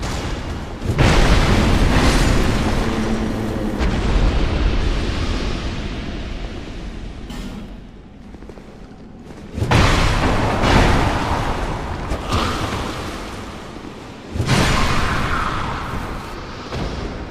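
Heavy blows land with loud booming thuds.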